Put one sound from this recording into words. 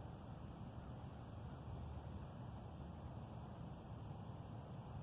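Wind blows steadily outdoors, rumbling against the microphone.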